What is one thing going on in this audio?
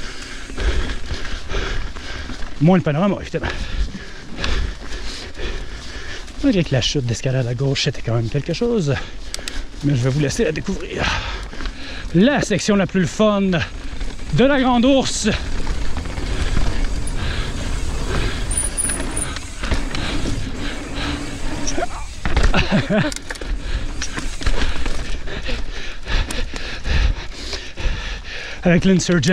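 A bike rattles and clatters over rough ground.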